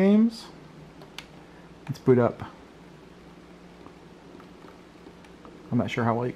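Buttons on a game controller click softly.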